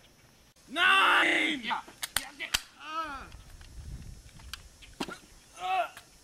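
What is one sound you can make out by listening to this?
A young man shouts loudly outdoors, some distance away.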